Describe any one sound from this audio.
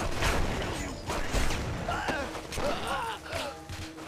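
Punches thud as fighters brawl.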